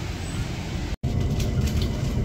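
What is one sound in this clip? A train rumbles along on its tracks.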